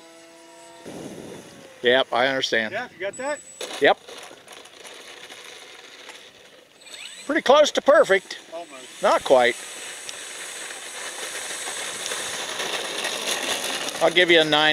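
A model plane's motor whines as it flies in and lands.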